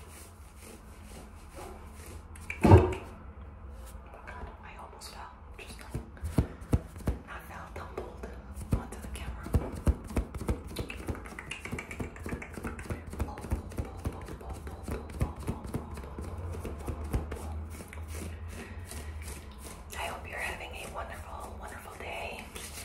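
Fingers rub and scratch on a knit sweater sleeve close to a microphone.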